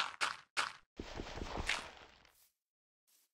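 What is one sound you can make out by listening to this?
A block of dirt crumbles as it is broken.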